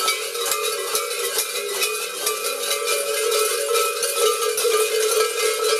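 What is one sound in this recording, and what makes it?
Large cowbells clang and rattle steadily and loudly.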